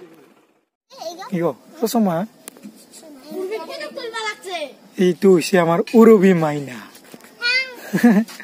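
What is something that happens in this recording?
A young girl speaks close by, calmly and in short bursts.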